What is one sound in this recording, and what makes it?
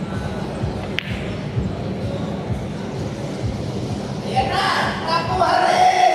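A pool ball rolls across the table and knocks against another ball.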